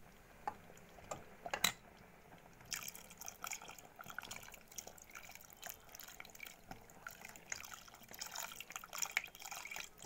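Liquid bubbles and simmers in a pot.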